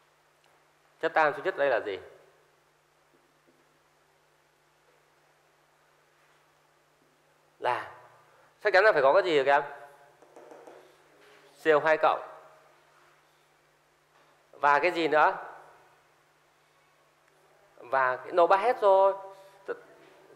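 A man speaks calmly in short phrases through a close microphone.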